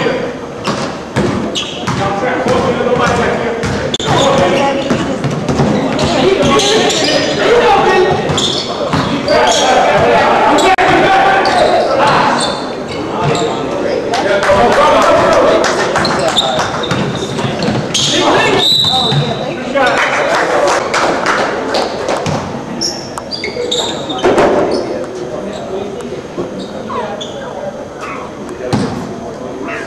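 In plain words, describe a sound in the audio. A crowd of men shout and cheer in a large echoing gym.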